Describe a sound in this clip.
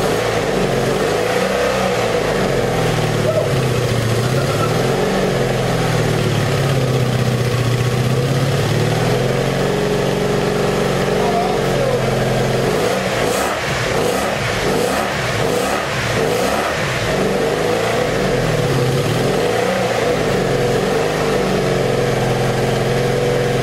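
A motorcycle engine idles loudly and roughly, its pitch rising and falling as the throttle is worked.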